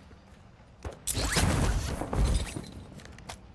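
A heavy thud sounds as a body lands on the ground after a drop.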